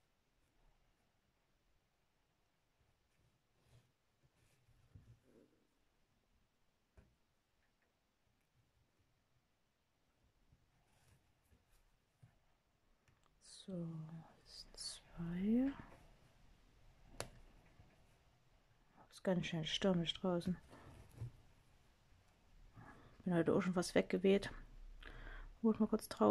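A needle and thread pull softly through stiff fabric.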